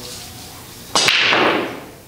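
A cue ball smashes into a rack of pool balls with a loud crack.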